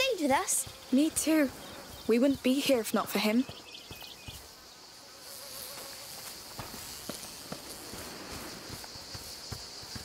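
Footsteps crunch on dry grass and dirt.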